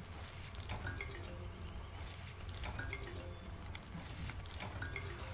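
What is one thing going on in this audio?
A bright game chime plays several times.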